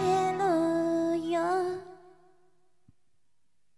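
A young woman sings a long held note into a microphone, with echo trailing off.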